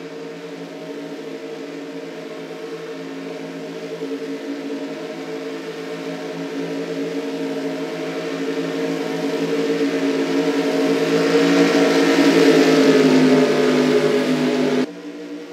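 Racing car engines roar steadily at high speed, growing louder as the cars close in.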